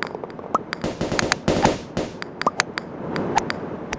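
A golf ball is struck with a putter and rolls away.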